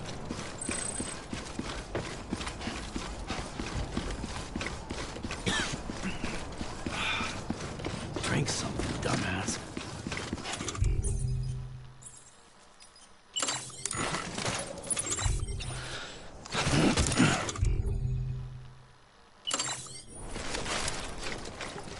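Footsteps crunch steadily on pavement.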